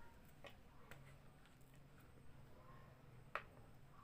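A plastic jar lid twists open with a faint click.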